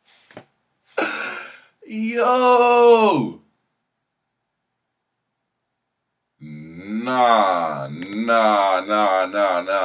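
A young man talks and exclaims with animation close to a microphone.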